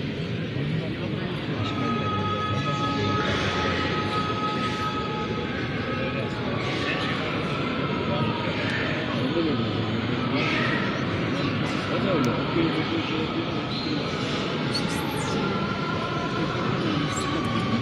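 A large crowd of men murmurs and chants together in a big echoing hall.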